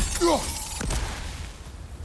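A heavy axe strikes with a sharp, ringing clang.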